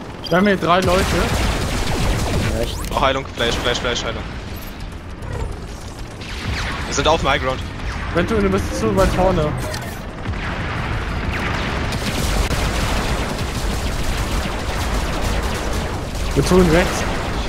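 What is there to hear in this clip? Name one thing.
Energy weapons fire in bursts with buzzing blasts.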